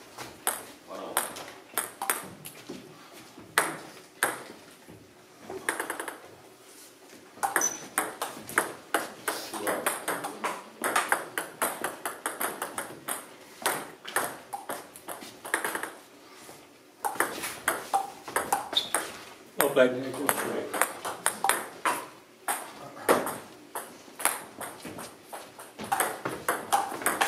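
A table tennis ball clicks rapidly back and forth on paddles and a table in an echoing hall.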